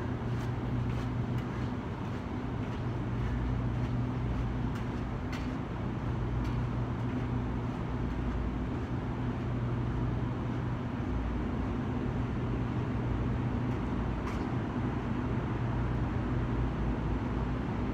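Footsteps walk away on concrete and fade.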